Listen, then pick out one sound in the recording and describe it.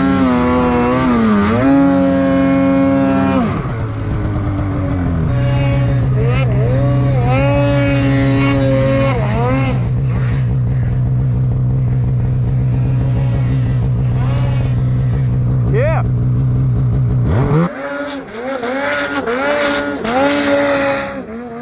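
A snowmobile engine roars and revs up and down close by.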